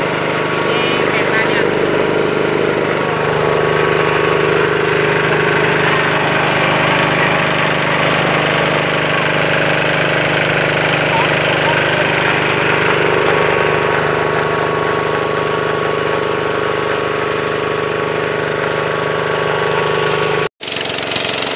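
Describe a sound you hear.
A small engine runs with a steady hum.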